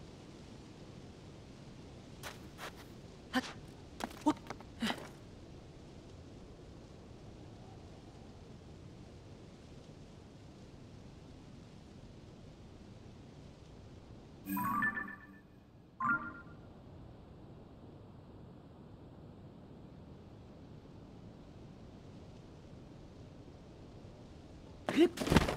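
Wind blows steadily across open sand.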